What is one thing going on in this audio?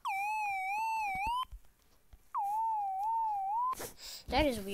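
An electronic tone wavers up and down in pitch.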